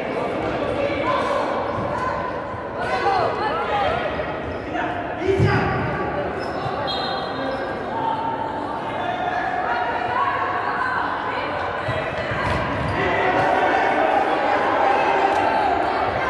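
Spectators nearby chatter and call out in an echoing hall.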